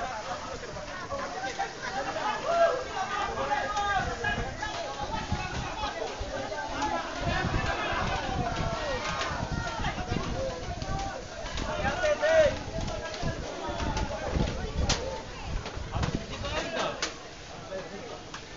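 A crowd of men and women shout and talk excitedly nearby.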